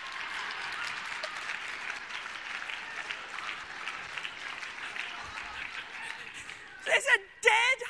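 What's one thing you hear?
An audience laughs and applauds in a large room.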